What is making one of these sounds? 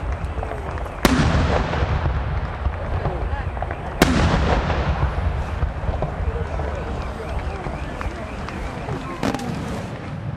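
Fireworks explode outdoors with loud, sharp bangs that echo.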